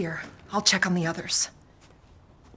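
A woman speaks calmly and quietly, close by.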